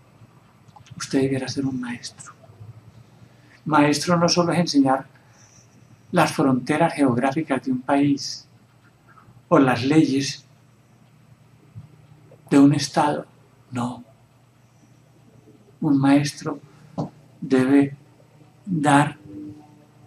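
A middle-aged man speaks calmly and closely in short phrases, with pauses between them.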